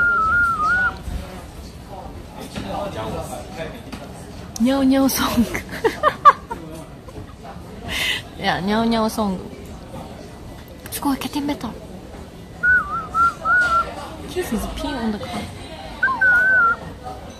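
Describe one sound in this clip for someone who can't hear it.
An ocarina plays a short high melody close by.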